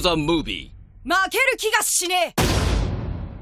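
A young boy shouts eagerly.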